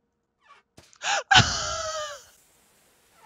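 A young woman screams loudly into a close microphone.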